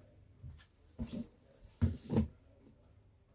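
A cardboard box slides and thumps on a table.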